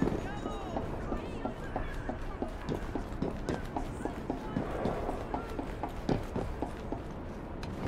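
A character's footsteps tap quickly across a metal and glass roof.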